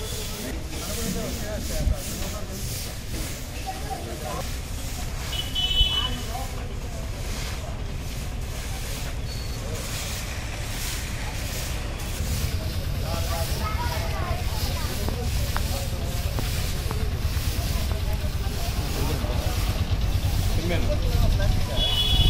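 Brooms sweep and scrape over a dusty street.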